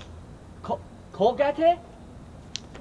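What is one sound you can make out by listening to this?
A young man speaks with emphasis up close.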